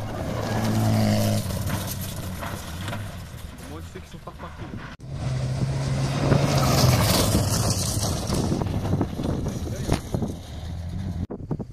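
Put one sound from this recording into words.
A rally car engine roars loudly as the car speeds past.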